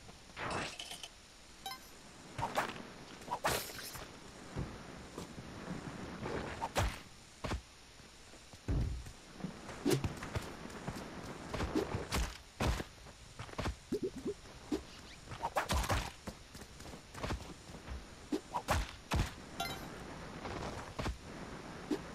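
Short video game sound effects pop, thud and chime.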